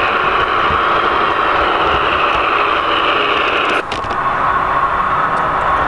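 A model train's motor hums and its wheels rattle along the track as it rolls close by.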